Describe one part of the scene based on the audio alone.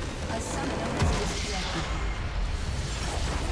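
A large explosion booms in the game.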